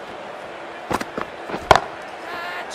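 A bat strikes a ball with a sharp crack.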